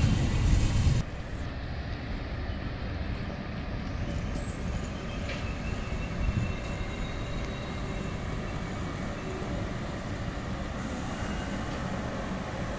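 A second train hums faintly as it slowly approaches.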